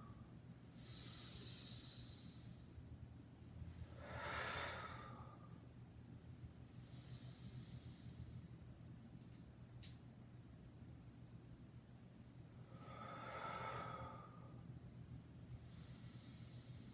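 A young man breathes out hard in bursts, close by.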